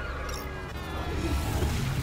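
Large mechanical flying creatures rush past with a loud whoosh.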